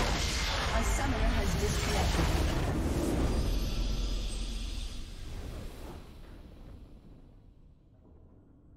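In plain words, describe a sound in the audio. A triumphant victory fanfare plays and fades.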